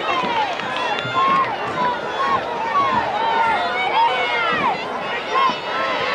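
Cheerleaders chant loudly.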